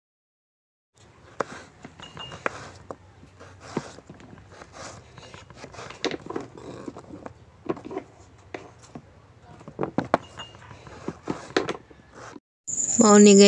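A knife chops through potato on a cutting board with quick, sharp knocks.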